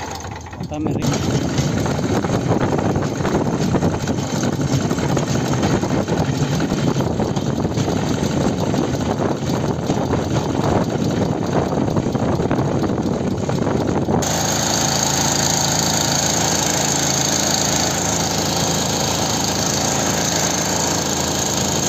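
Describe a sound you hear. A small petrol engine runs loudly and steadily close by.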